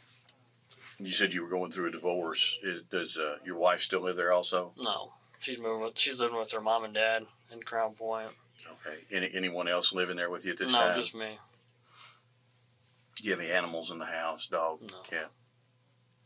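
A man speaks in a low voice, heard from across a small room.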